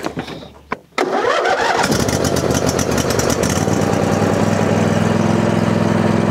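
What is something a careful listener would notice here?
A lawn mower engine cranks, starts and runs with a steady rumble.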